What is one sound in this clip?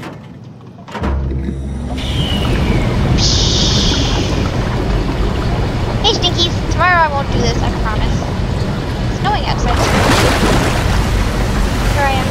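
A deep rumble starts and keeps going loudly.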